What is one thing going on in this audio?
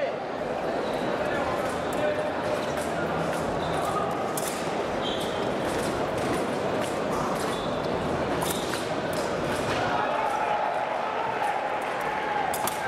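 Feet stamp and tap quickly on the floor.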